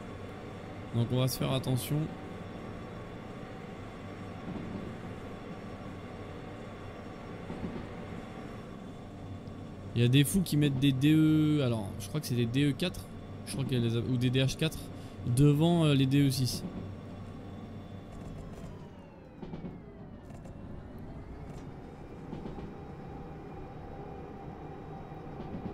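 A diesel locomotive engine drones steadily.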